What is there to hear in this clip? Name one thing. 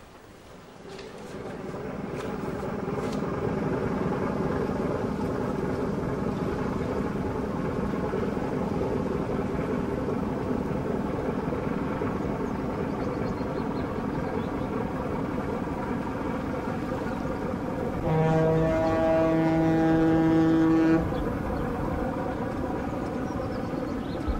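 A ship's engine rumbles steadily nearby.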